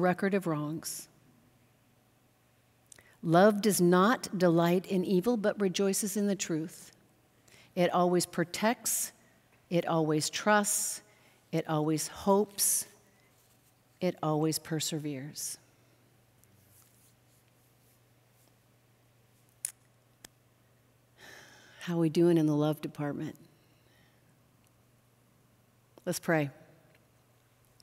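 A middle-aged woman reads aloud calmly through a microphone, with pauses.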